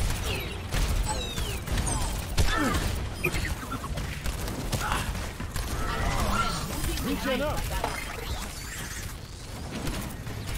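Rapid gunfire crackles from a game weapon.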